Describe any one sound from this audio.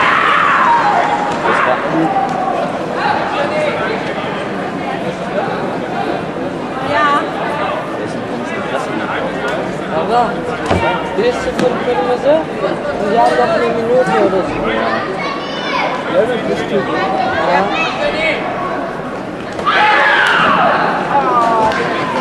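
Kicks thud against body padding.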